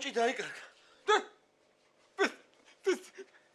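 A man laughs in short bursts.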